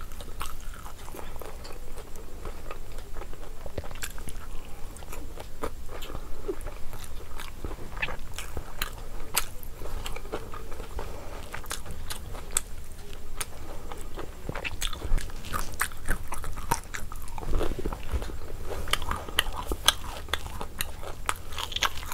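A young woman chews and smacks her lips loudly close to a microphone.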